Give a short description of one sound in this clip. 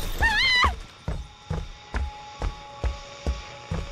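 Heavy footsteps thud on a wooden floor.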